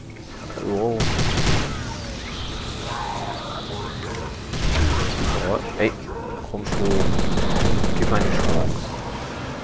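A gun fires loud bursts of shots.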